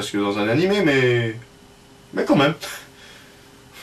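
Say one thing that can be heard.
A young man speaks close to the microphone in a drawn-out, sing-song voice.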